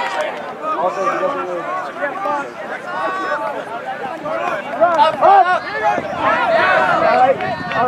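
A crowd of young people shouts and cheers outdoors.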